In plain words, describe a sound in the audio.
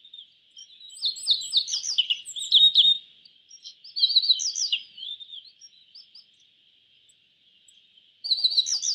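A small songbird sings a bright, rapid, chirping song in short bursts.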